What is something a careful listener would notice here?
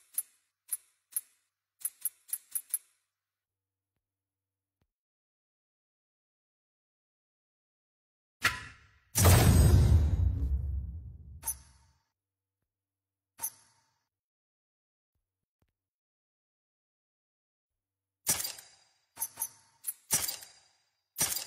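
Short electronic menu blips click repeatedly.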